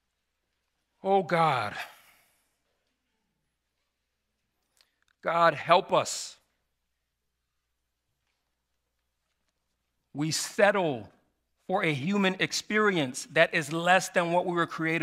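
A man speaks slowly and solemnly into a microphone, with long pauses.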